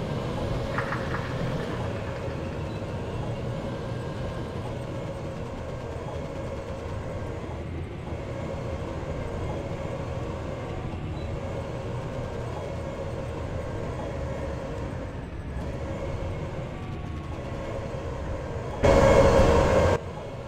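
A tank engine rumbles low and steady as the tank drives.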